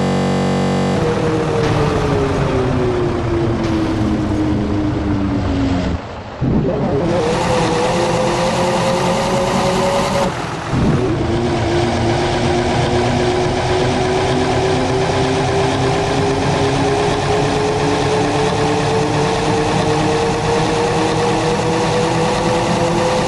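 A bus engine drones steadily, its pitch falling as it slows and then rising slowly as it speeds up again.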